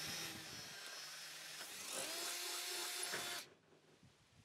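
A cordless drill whirs loudly, driving a screw into metal.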